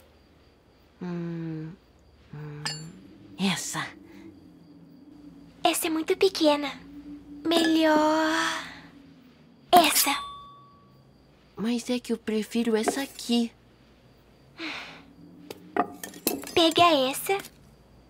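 A young girl speaks in a hushed, tense voice.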